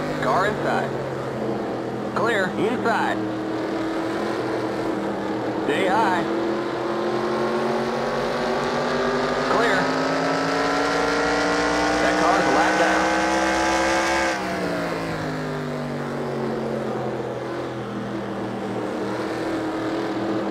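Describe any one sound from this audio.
A race car engine roars steadily, its pitch rising as the car speeds up and dropping as it slows.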